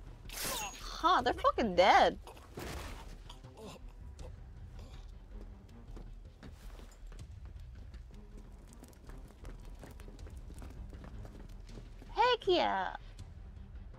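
A young woman exclaims loudly into a microphone.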